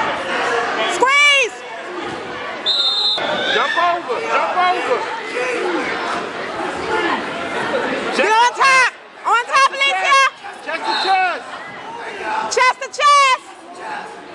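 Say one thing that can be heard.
Spectators shout and cheer loudly in bursts.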